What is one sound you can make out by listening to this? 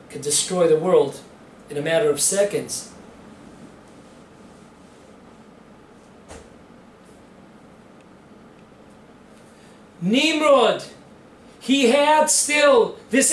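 An elderly man speaks calmly and clearly into a nearby microphone, pausing between phrases.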